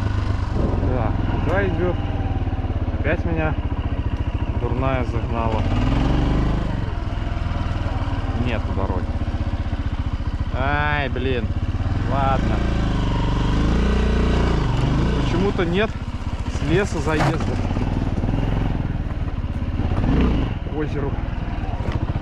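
A dirt bike engine rumbles up close and revs up and down again and again.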